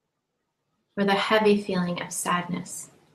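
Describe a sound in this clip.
A young woman speaks softly and calmly, close to a microphone.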